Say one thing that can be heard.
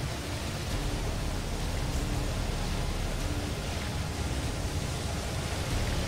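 Air conditioner fans whir steadily nearby.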